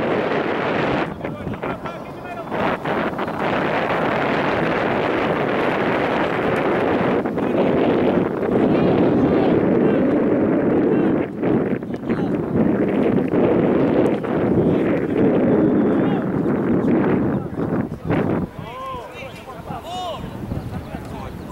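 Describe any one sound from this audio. Wind blows steadily outdoors across an open field.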